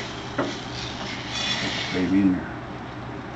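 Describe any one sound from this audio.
Thick batter pours into a pan.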